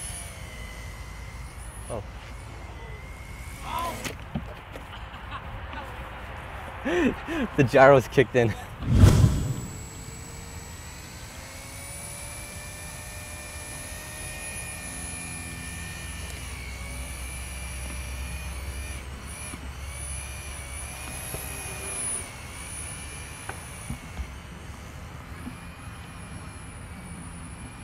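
A model helicopter's rotor whines steadily overhead, its pitch wavering as it flies.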